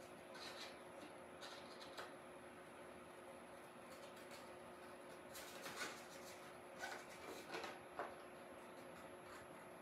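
Scissors snip through paper.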